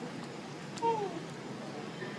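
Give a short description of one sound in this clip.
A baby monkey lets out a short, high squeak.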